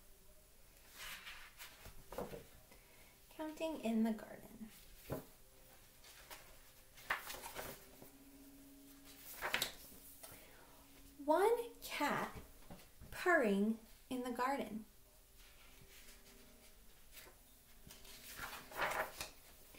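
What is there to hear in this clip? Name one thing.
Book pages rustle as they turn.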